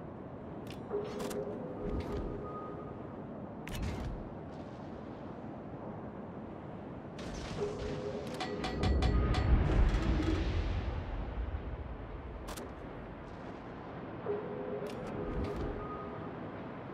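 Shells explode in the distance with dull thuds.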